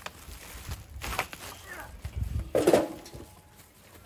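Charcoal rattles and clatters as it pours from a bag into a metal grill.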